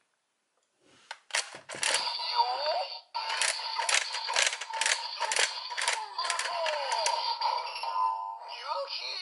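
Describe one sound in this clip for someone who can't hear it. A toy blaster plays loud electronic sounds and music.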